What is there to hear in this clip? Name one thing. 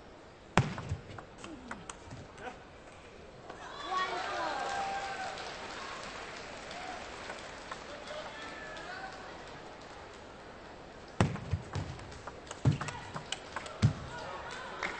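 A ball clicks back and forth off paddles and a table in a rally.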